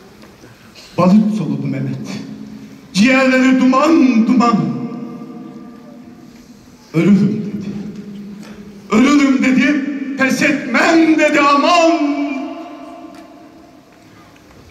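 An elderly man sings loudly into a microphone in a large echoing hall.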